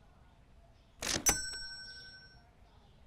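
A bright register chime rings out and slowly fades.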